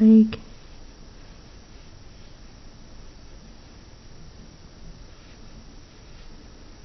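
A paintbrush softly strokes across paper.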